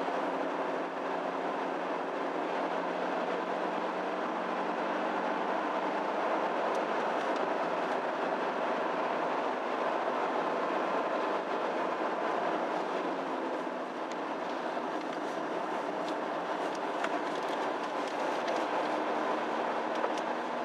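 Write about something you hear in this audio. Tyres roll over the road surface with a steady rush.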